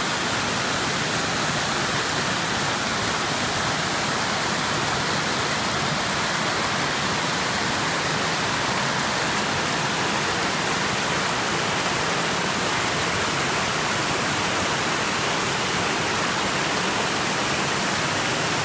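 A stream rushes and splashes loudly over rocks close by.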